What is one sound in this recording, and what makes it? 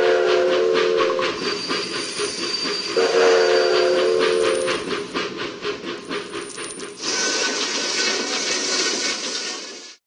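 A steam locomotive chugs along a track.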